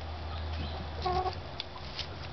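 A hen gives a short squawk.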